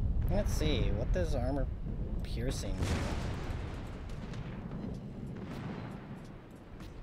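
Naval guns boom and rumble, then fade.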